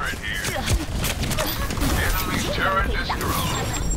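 A freezing spray weapon hisses in bursts.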